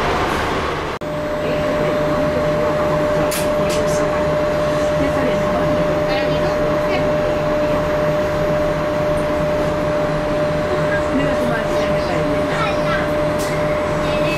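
A train carriage hums steadily from inside.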